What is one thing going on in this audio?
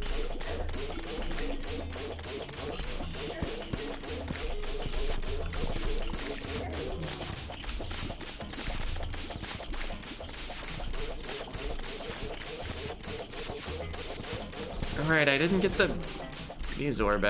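Rapid game hits and small blasts crackle and pop over and over.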